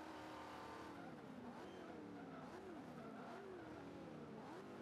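Tyres screech while a car drifts.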